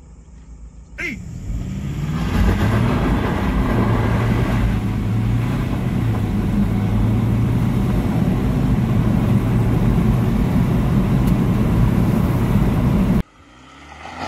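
A car engine revs hard and roars as the car speeds up.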